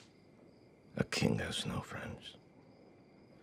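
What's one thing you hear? A man speaks in a low, calm voice, close by.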